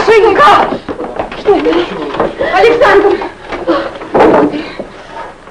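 A woman shouts and screams in distress.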